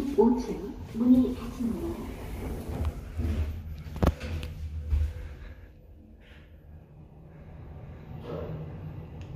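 An elevator car hums and rumbles as it moves between floors.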